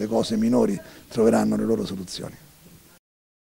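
A middle-aged man speaks calmly into microphones up close.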